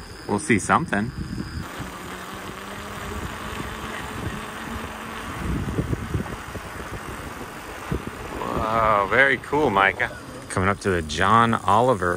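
Bicycle tyres hiss along a wet paved road.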